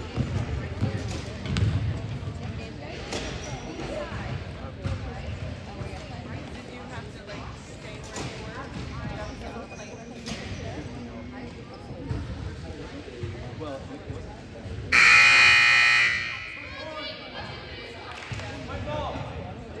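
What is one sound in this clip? Spectators close by murmur and chatter.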